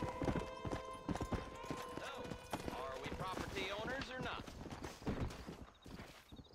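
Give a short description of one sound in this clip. A horse gallops with hooves thudding on the ground.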